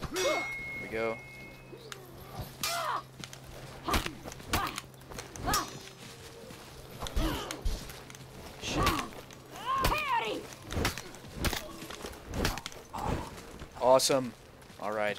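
Swords clash and clang in quick blows.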